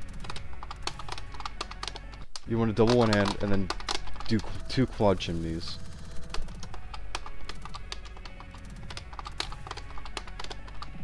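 Plastic buttons on a guitar-shaped game controller click rapidly.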